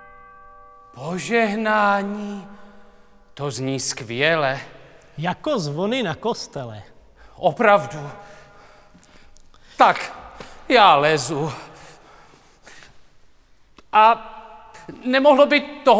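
A man sings loudly with wide vibrato in a large echoing hall.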